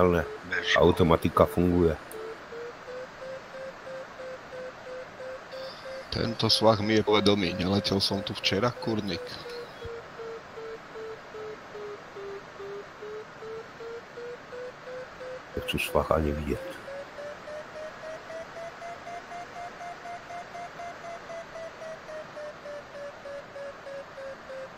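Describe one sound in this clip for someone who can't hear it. A glider's variometer beeps quickly and steadily, its pitch slowly rising and falling.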